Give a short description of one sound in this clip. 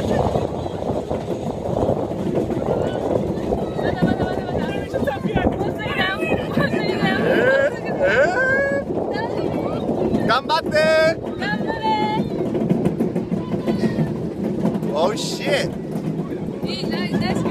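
Wind rushes loudly past a close microphone.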